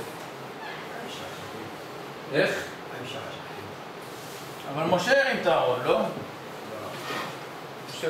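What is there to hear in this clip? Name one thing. A man speaks calmly into a nearby microphone.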